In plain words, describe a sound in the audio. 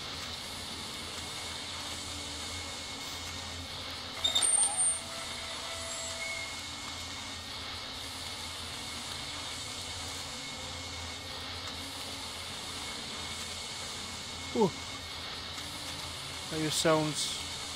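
A burning flare hisses steadily.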